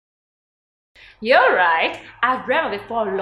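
A young woman laughs and talks excitedly, close by.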